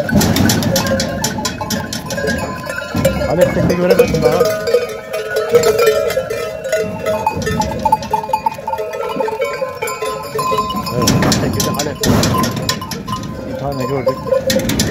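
Hooves shuffle and clatter on hard ground as goats crowd together.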